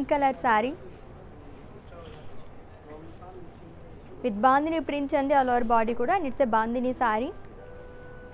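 A young woman speaks brightly and close by.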